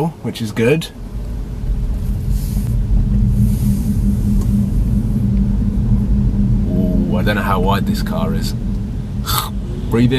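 A car engine hums steadily inside the car.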